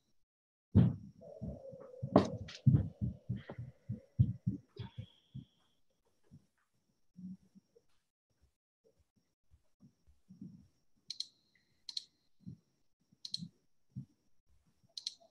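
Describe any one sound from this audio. A young woman speaks quietly over an online call.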